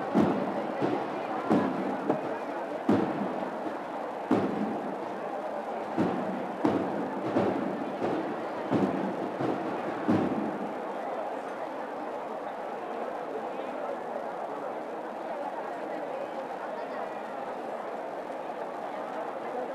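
A large outdoor crowd murmurs steadily.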